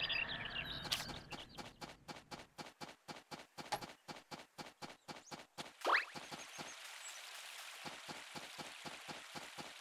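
Footsteps patter quickly and evenly on a dirt path.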